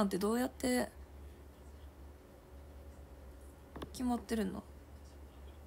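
A young woman speaks briefly and calmly into a nearby microphone.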